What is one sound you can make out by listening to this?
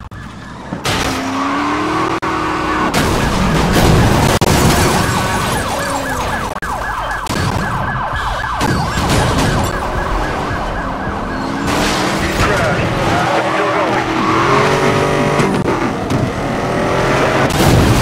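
A police siren wails nearby.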